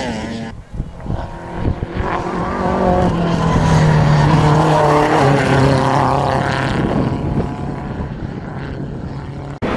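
Another rally car engine revs loudly as the car races past and away.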